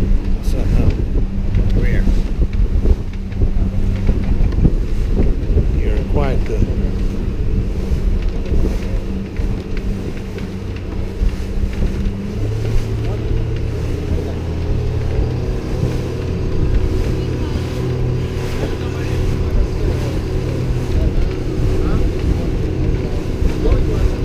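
Wind blows over the microphone outdoors.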